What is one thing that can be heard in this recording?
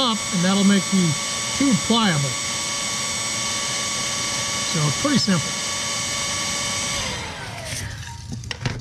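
A power drill whirs steadily, then winds down.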